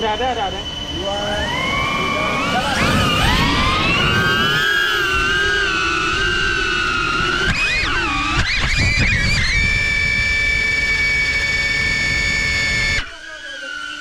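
A small motor whines and rises in pitch, then holds steady.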